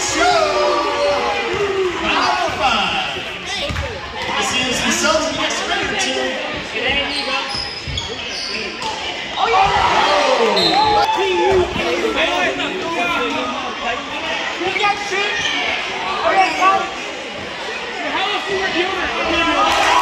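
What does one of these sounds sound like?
A crowd cheers and chatters loudly, echoing in a large hall.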